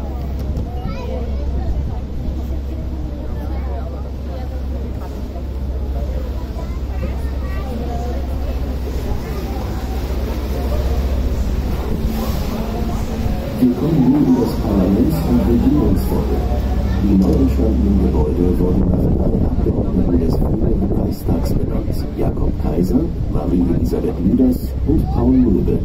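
River water splashes against the hull.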